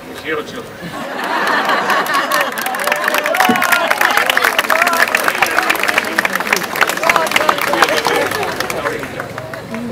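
A crowd laughs nearby.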